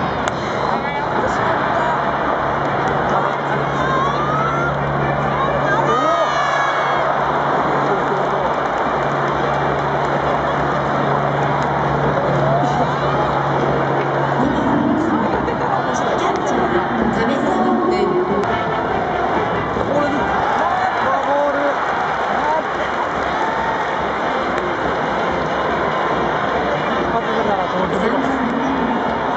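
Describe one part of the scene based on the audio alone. A large stadium crowd murmurs and cheers throughout.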